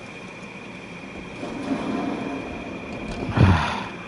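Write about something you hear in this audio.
A van door is pulled open.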